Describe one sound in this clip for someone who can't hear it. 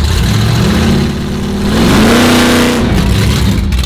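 A car engine revs up sharply and then drops back.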